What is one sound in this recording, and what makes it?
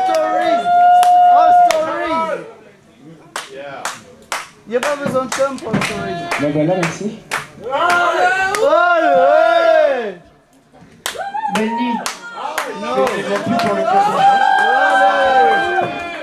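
A young man sings loudly through a microphone and loudspeakers.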